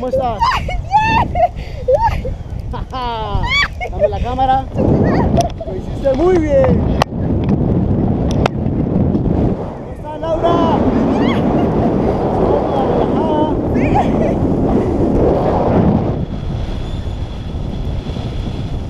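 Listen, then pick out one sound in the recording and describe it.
Wind rushes and buffets loudly past a microphone.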